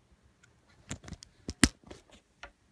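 A plug clicks into a socket.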